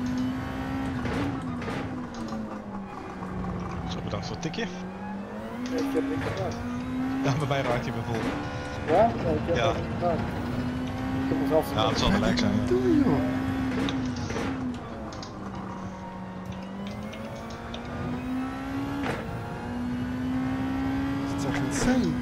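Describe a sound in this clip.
A racing car engine revs up and drops sharply with each gear change.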